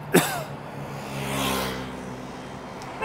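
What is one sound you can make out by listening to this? A car drives past on the road outdoors.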